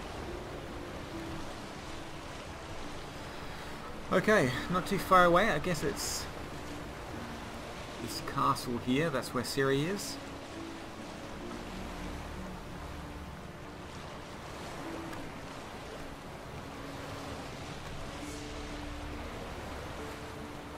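Water splashes against the hull of a sailing boat.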